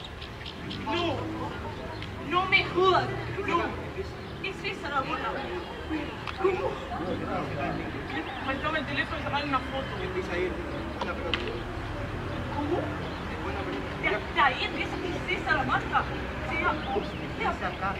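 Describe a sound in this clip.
Young women talk quietly together at a distance.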